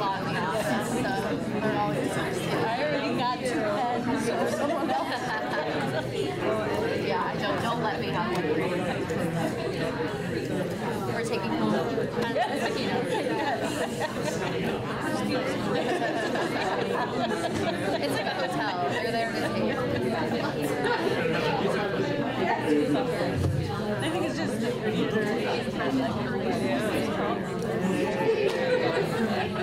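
Many people chatter at once in a large room.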